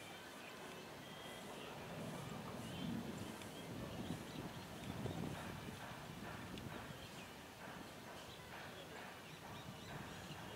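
Wind rumbles and blusters outdoors.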